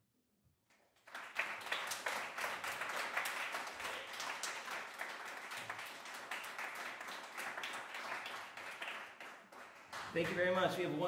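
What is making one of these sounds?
An audience claps and applauds warmly.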